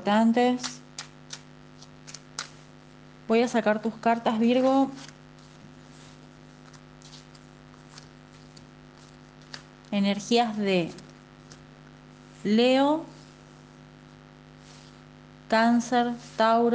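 A young woman speaks calmly into a microphone in short bursts with pauses.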